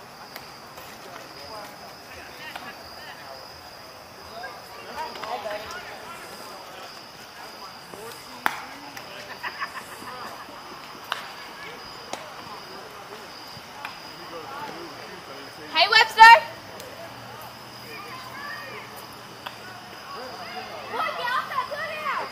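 Men call out and shout across an open field at a distance.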